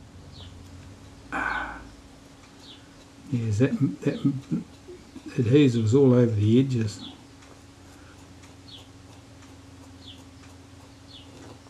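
A cotton swab rubs softly against a small hard surface.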